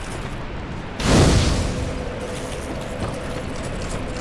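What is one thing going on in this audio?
A fire bursts alight with a loud whoosh and crackles.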